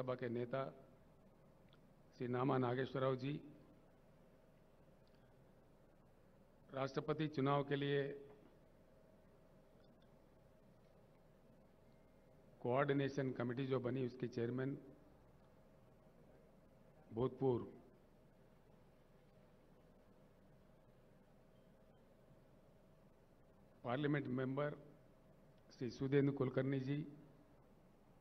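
An elderly man speaks slowly into a microphone in short bursts, with long pauses, heard through loudspeakers.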